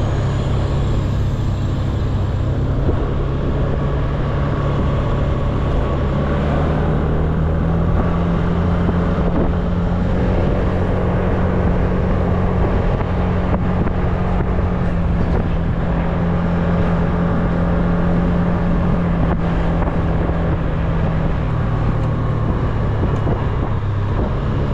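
A scooter engine hums steadily up close, rising and falling in pitch.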